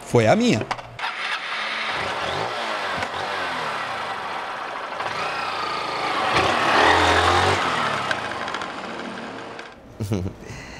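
A motorcycle engine runs and pulls away.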